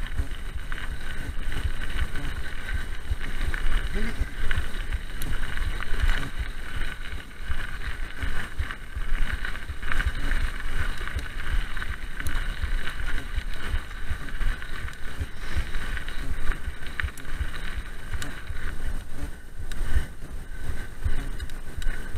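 Bicycle tyres crunch and rumble over gravel.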